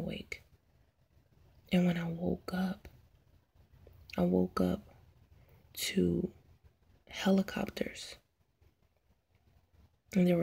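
A woman speaks slowly and sadly, close by, in short bursts with pauses.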